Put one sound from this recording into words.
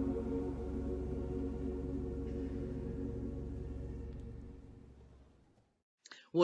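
A large choir sings a sustained chord in a reverberant hall, then fades out.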